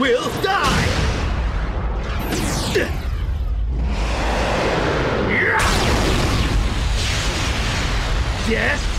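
A ball whooshes through the air with a roaring rush.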